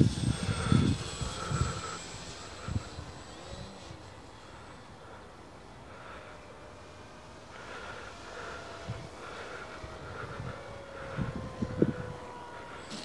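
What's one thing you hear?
A small model plane's electric motor whines overhead, its pitch rising and falling.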